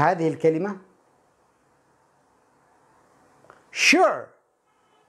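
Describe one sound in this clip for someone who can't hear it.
A man speaks calmly and clearly into a close microphone, in short words with pauses.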